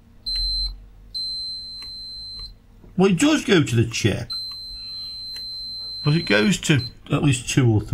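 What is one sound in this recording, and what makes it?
A multimeter gives a steady high beep on and off.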